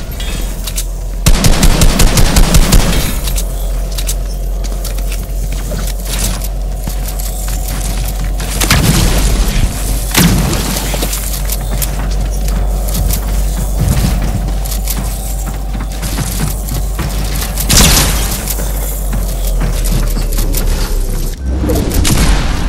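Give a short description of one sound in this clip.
Building pieces snap into place with rapid clicks.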